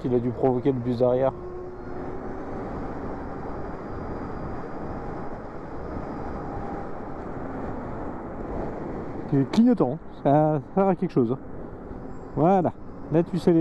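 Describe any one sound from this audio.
A man talks calmly through a helmet microphone.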